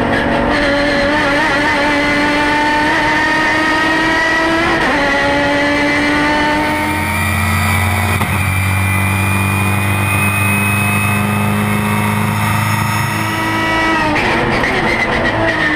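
A race car engine roars loudly, rising in pitch and dropping briefly as gears change.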